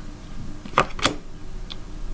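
A card is laid down onto a wooden table with a soft slap.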